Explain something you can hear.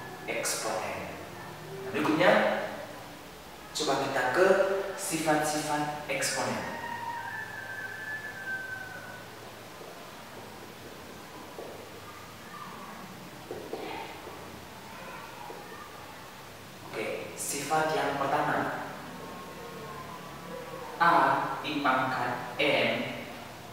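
A young man speaks calmly, explaining, in a small echoing room.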